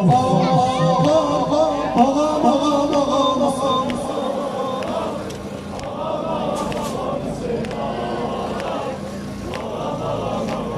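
A large crowd chants and sings together.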